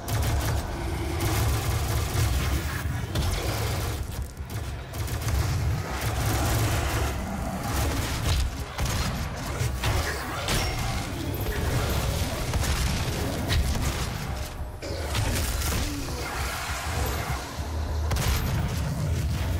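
Shotgun blasts boom again and again.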